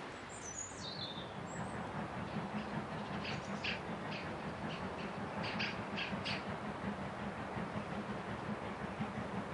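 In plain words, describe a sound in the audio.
A steam locomotive chuffs steadily in the distance outdoors.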